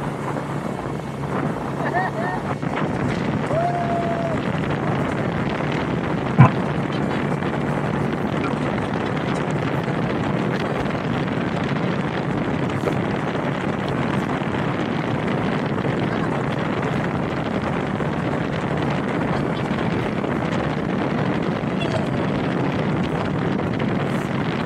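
A boat engine roars steadily.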